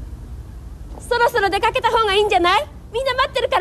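A woman calls up from below, answering loudly.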